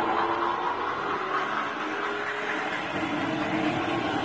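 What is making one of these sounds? A jeep engine rumbles as it drives along a dirt road.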